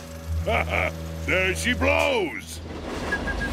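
A man speaks with animation in a cartoonish voice.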